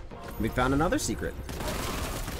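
A young woman exclaims with animation close to a microphone.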